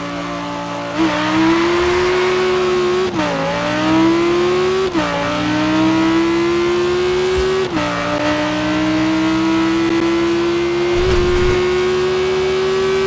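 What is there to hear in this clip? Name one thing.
A sports car engine roars and revs up through the gears as the car speeds away.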